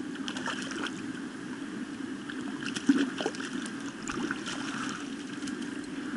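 A net splashes through water.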